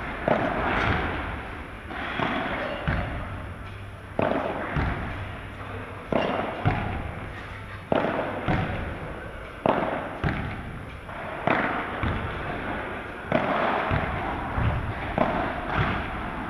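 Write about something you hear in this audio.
Sound echoes around a large hall.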